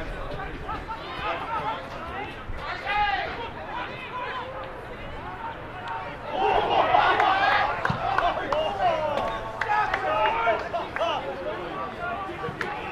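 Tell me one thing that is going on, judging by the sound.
Men shout to each other across an open sports field.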